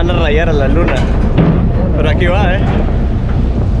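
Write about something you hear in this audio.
A man talks cheerfully close to a microphone.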